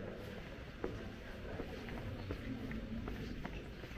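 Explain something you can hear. Footsteps shuffle on a stone floor.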